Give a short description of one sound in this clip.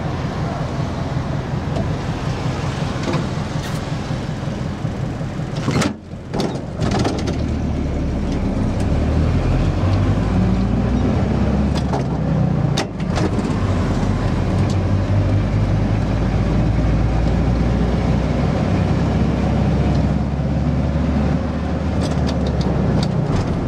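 A bus engine rumbles and revs as the bus drives along.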